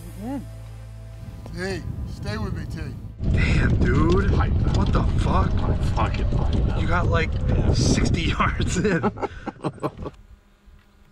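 A man talks and shouts loudly with animation close by.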